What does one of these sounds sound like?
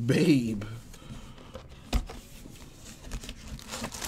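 A cardboard box lid is pulled open.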